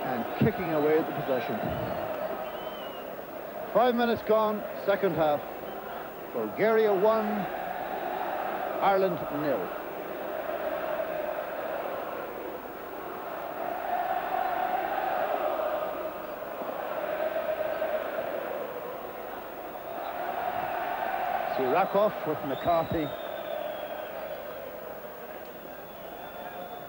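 A large stadium crowd murmurs and roars steadily.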